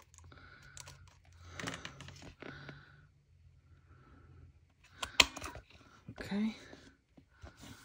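Stiff card pages rustle and flap as they are turned.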